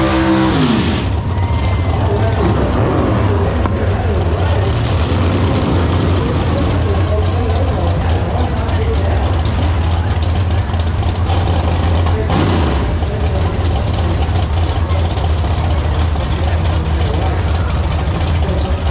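Race car engines roar loudly and steadily.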